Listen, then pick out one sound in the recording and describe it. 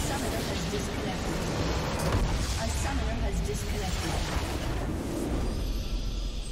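A deep explosion rumbles as a large structure collapses.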